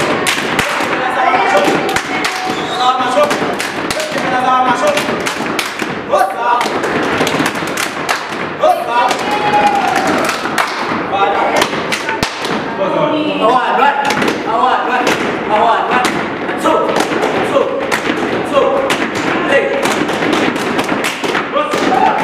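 Rubber boots stomp and slap in quick rhythm on a hard floor.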